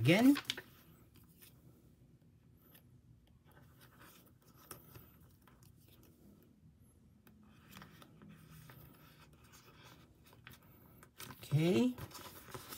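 Plastic card sleeves rustle and crinkle softly as cards are handled.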